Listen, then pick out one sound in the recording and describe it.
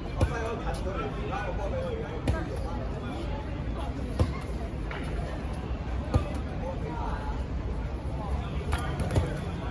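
Several young men chatter and call out across an open outdoor court.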